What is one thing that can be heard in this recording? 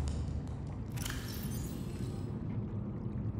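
A handheld device opens with a short electronic whoosh.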